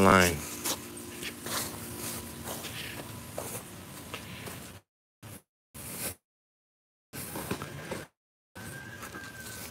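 Footsteps crunch on dry grass and leaves.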